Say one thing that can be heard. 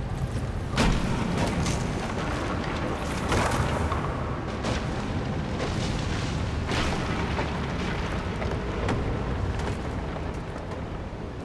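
Wooden beams knock and clatter.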